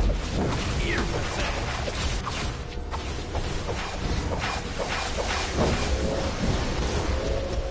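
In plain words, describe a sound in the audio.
Energy blasts and magic effects crackle and whoosh in a fast fight.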